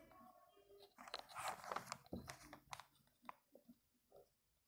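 A pen scratches on paper.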